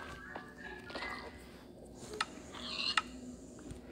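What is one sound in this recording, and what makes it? A pickaxe taps and breaks blocks in a game.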